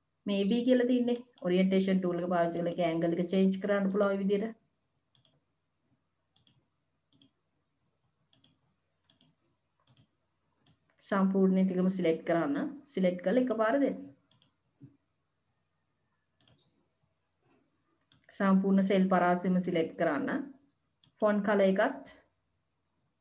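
A woman speaks calmly over an online call, in short bursts with long pauses.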